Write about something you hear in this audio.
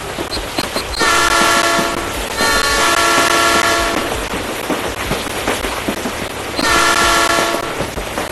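A train horn blares in several long blasts.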